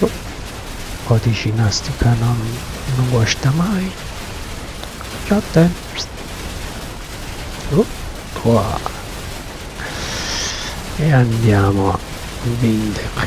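A young man talks casually into a microphone, close up.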